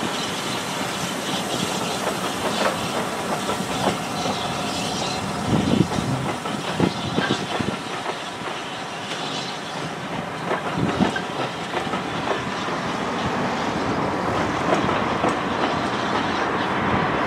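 Train carriages rumble and clatter steadily along the rails.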